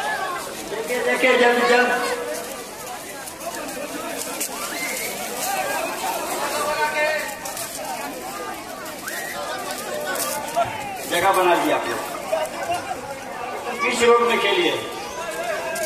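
Men in the crowd shout loudly.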